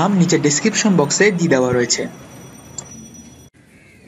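A wheelbarrow rolls over concrete with a low rumble.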